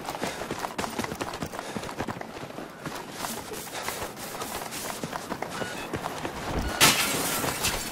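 Footsteps thud quickly on pavement.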